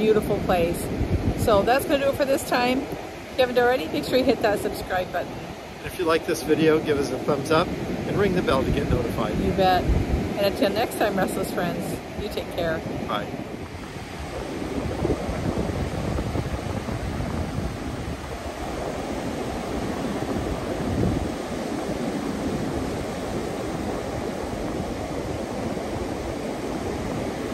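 Waves wash steadily onto a beach, with wind blowing.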